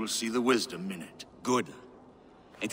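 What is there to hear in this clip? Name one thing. A middle-aged man speaks calmly and formally.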